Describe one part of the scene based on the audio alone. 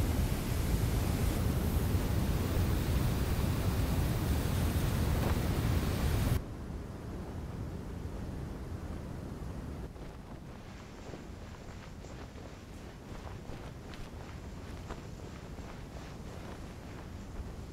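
Wind blows steadily across open ground.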